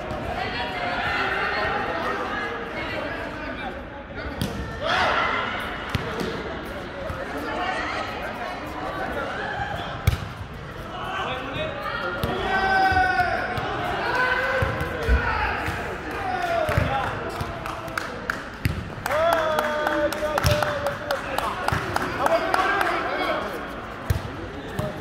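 Men shout and call out during a volleyball game in a large echoing hall.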